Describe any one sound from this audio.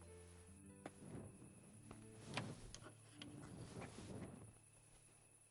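A metal lock clicks and scrapes as it turns.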